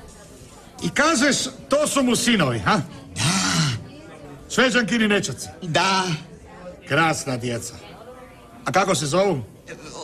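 A middle-aged man reads aloud with animation close by.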